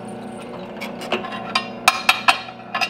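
A small piece of wood clatters onto a metal table.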